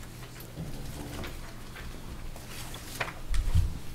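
Papers rustle on a table.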